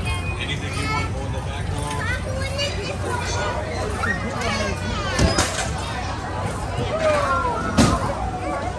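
A fairground ride's motor hums steadily.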